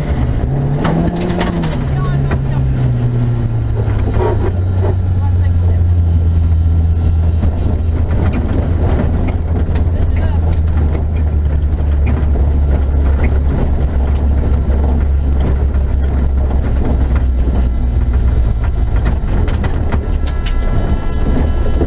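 The car's body rattles and knocks over bumps.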